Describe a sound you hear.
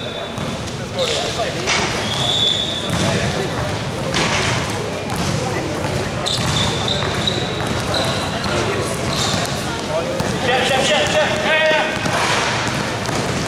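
A basketball bounces on the floor with dull thuds.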